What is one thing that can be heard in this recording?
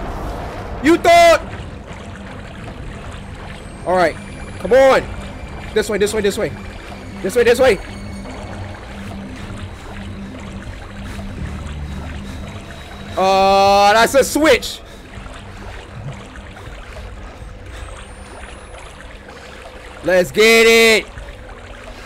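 A young man talks and exclaims loudly into a close microphone, in short bursts.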